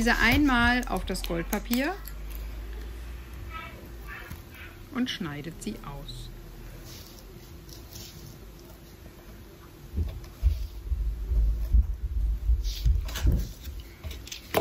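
Foil paper crinkles as hands handle and fold it.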